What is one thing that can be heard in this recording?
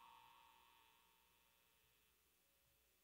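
Electric guitars ring out on a held chord and slowly fade away.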